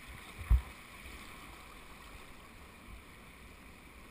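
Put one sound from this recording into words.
A paddle splashes in the water.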